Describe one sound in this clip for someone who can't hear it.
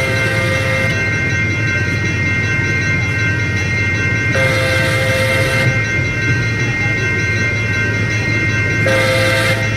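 A train horn blasts several times.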